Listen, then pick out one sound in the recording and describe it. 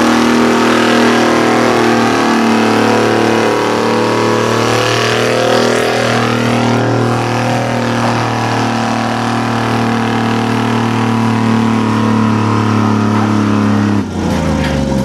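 A tractor engine roars loudly close by.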